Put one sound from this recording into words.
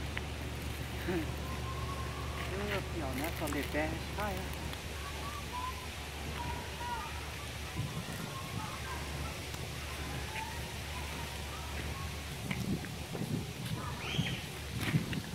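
Footsteps scuff on a leafy path.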